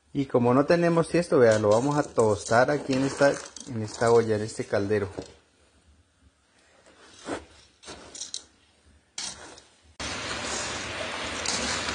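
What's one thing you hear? A spoon stirs and scrapes through dry beans in a metal pot.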